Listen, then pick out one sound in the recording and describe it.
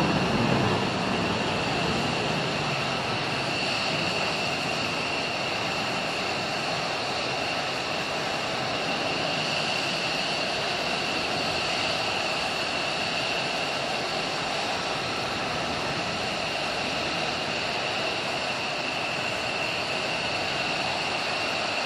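Jet engines roar with a steady high whine as a fighter jet taxis past.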